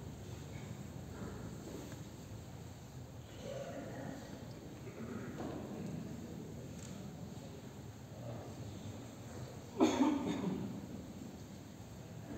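A crowd of men murmurs softly in a large echoing hall.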